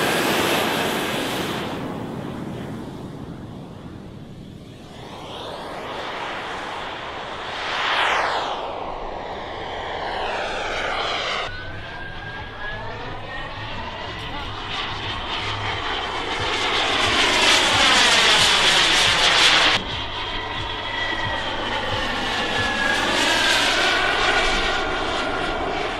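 A jet engine roars loudly as a small jet plane flies past, rising and falling in pitch.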